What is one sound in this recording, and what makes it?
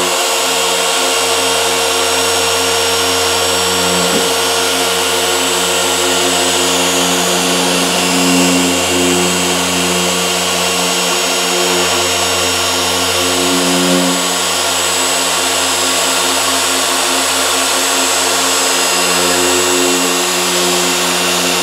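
An electric polisher whirs steadily, its hum wavering as it is pressed and moved.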